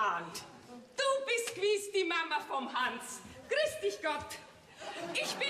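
A middle-aged woman calls out a cheerful greeting.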